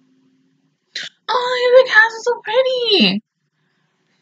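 A young woman sings briefly and closely into a microphone.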